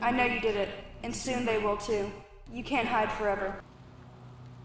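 A young woman speaks weakly and breathlessly up close.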